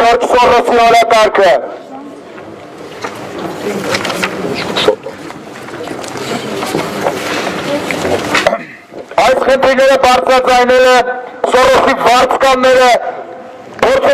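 A man speaks loudly through a megaphone outdoors.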